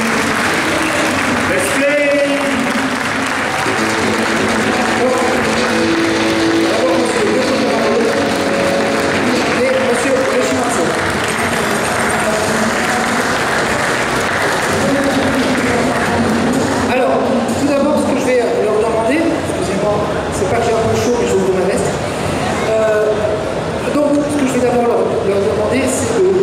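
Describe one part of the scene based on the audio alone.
A man speaks with animation through a microphone over loudspeakers in a large echoing hall.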